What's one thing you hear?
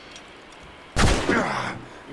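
A heavy thud sounds as a body lands after a jump.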